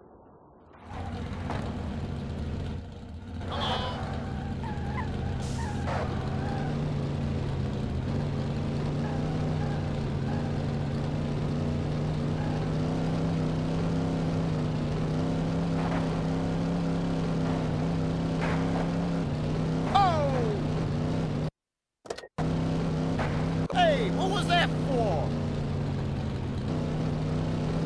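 A car engine hums steadily at speed.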